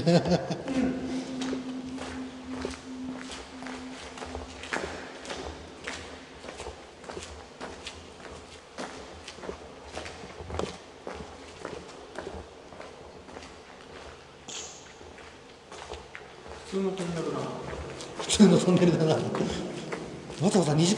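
Footsteps fall on a hard floor and echo in a tunnel.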